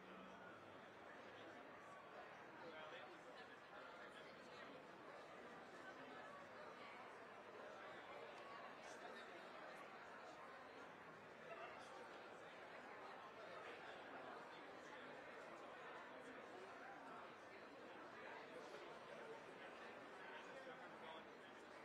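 A crowd of spectators murmurs outdoors.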